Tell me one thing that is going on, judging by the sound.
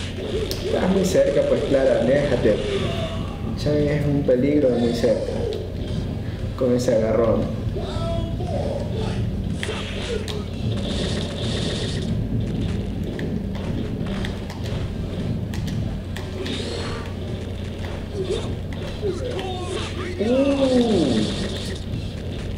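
A man talks with animation close by.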